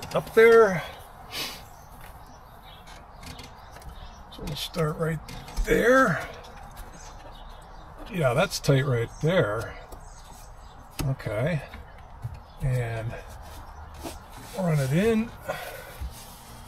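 A middle-aged man talks calmly and close by, in short phrases with pauses.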